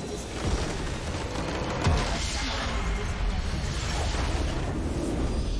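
A crystal shatters in a loud, booming magical explosion.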